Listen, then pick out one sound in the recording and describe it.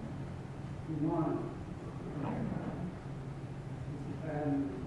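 An elderly man speaks calmly through a microphone in an echoing hall.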